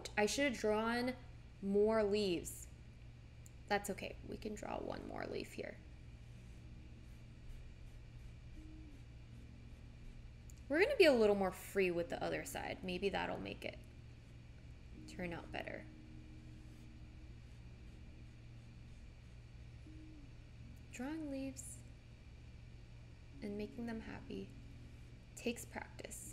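A young woman talks calmly and casually close to a microphone, pausing often.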